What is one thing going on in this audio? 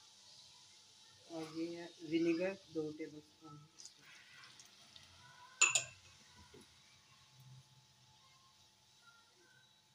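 Broth bubbles and simmers in a pot.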